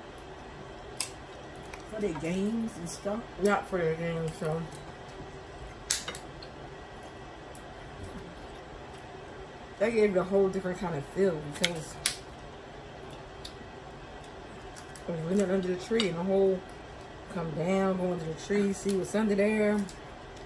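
Crab shells crack and snap in hands.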